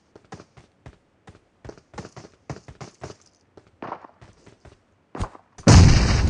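Quick footsteps patter on a hard surface.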